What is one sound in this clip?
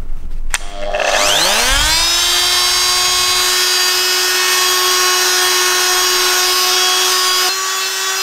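A handheld power sander spins up with a rising whine and runs steadily.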